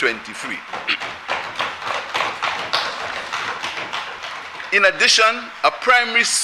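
A middle-aged man speaks steadily and formally into a microphone.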